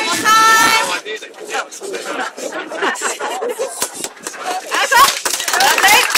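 Young girls chatter and call out excitedly nearby.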